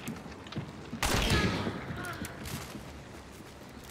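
A revolver fires a loud shot that echoes away.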